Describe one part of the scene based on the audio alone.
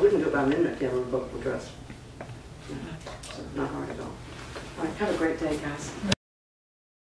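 An older woman speaks calmly and clearly.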